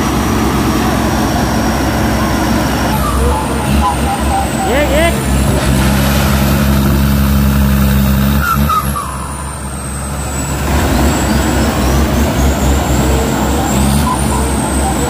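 A diesel engine rumbles loudly and steadily close by.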